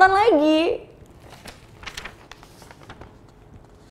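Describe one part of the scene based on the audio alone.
Paper rustles in a young woman's hands.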